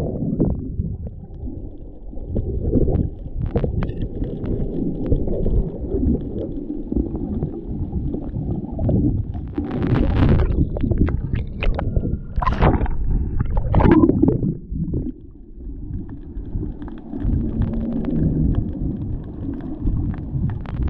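Water rushes and bubbles in a muffled underwater rumble.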